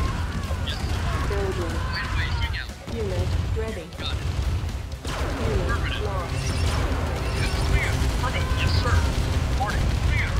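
Small arms fire crackles in a battle.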